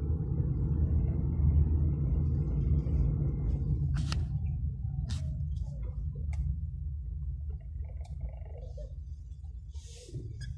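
Wind rumbles outdoors against the microphone.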